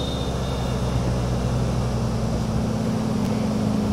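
Tyres scrape as a car grinds along a concrete barrier.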